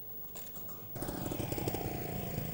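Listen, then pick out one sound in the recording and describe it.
A motorcycle engine revs loudly close by.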